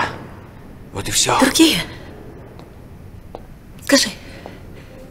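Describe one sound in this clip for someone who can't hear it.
A young woman speaks emotionally and close by, in short bursts.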